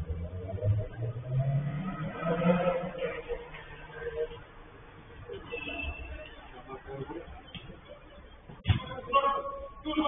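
Men shout and call to each other at a distance in a large echoing hall.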